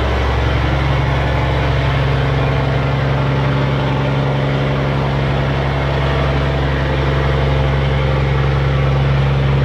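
Water churns behind a barge's propeller.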